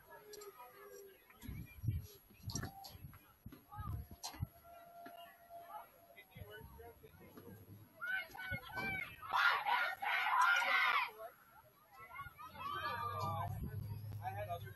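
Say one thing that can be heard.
Young players shout to each other across an open field outdoors.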